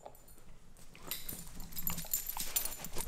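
A dog's paws patter and its claws click on a hard floor.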